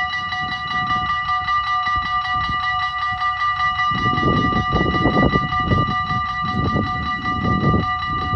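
A level crossing bell rings rapidly and steadily.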